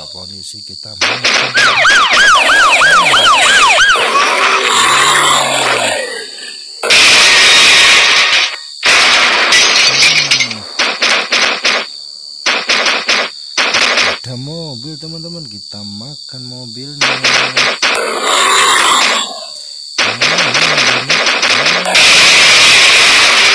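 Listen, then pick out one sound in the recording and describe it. Metal crashes and bangs sharply.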